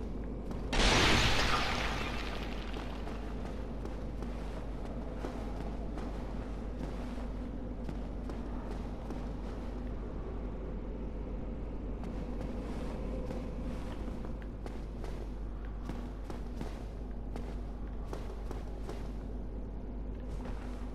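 Armoured footsteps clink and thud on stone.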